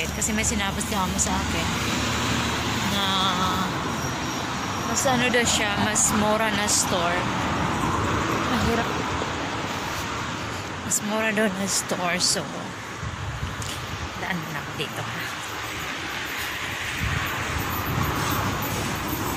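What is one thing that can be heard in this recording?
A young woman talks casually close to a phone microphone outdoors.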